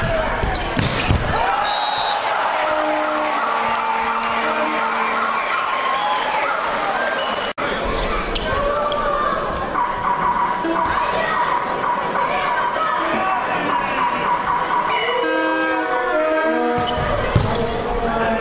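A volleyball is struck hard in a large echoing hall.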